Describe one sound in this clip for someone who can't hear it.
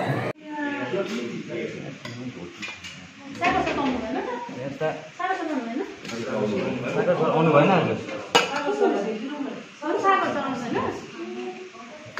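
Serving spoons clink against metal pots.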